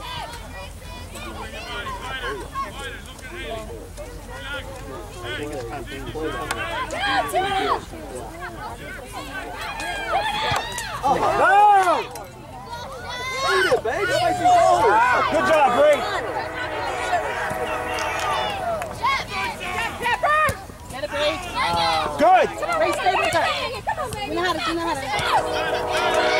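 Young women shout across an open field.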